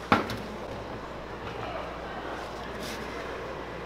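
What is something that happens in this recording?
A hand squeezes and tosses meat in flour with soft squelching.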